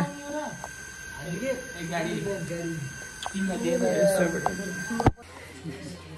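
Young men talk and laugh casually nearby.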